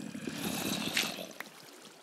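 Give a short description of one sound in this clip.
Dirt blocks crunch as they are dug and placed in a game.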